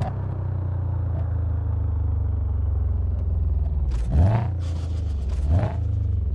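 A car engine rumbles low and steady as the car slows down.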